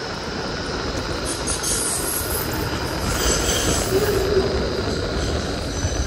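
A tram rolls past close by.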